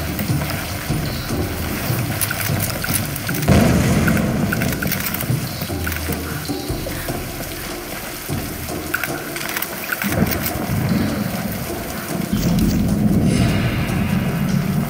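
Fire crackles and roars nearby.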